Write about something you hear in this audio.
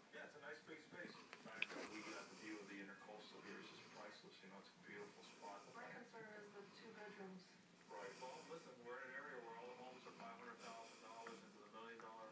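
A small dog sniffs and snuffles against a cat's fur.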